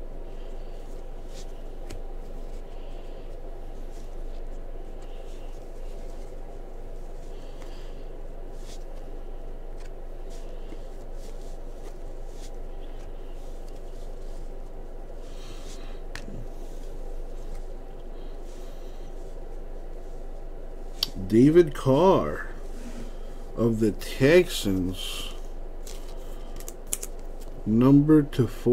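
Trading cards slide and flick softly against each other.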